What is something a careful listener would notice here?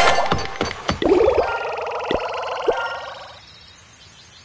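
Game coins clink and jingle as they pour out.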